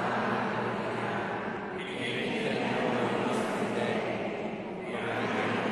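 A man's voice speaks through a loudspeaker in a large echoing hall.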